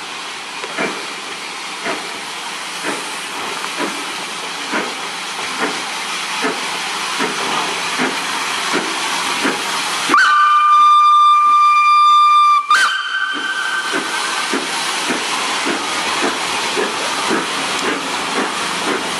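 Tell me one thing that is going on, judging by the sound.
A steam locomotive chuffs in a steady rhythm that slowly quickens.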